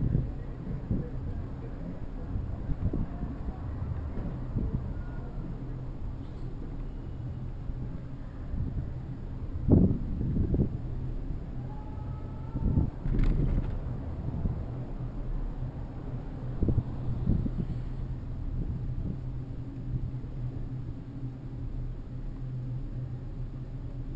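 A bicycle rolls and rattles over brick paving.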